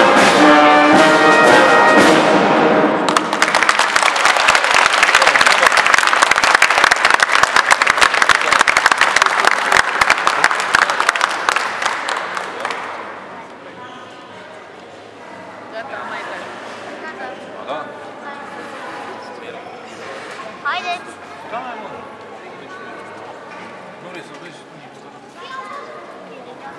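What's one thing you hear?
A brass band plays a tune in a large echoing hall.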